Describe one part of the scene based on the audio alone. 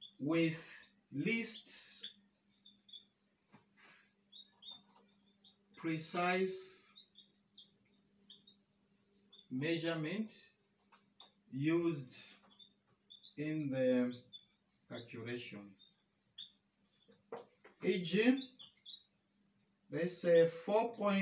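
A man speaks calmly in short phrases, close by, with pauses between them.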